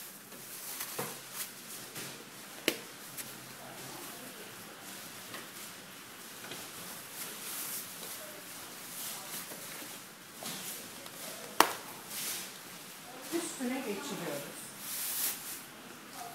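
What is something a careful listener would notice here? Fabric rustles and scrapes as it is handled.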